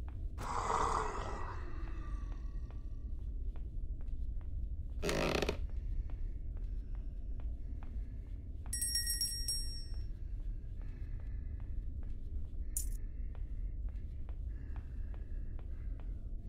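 Footsteps tap across wooden floorboards.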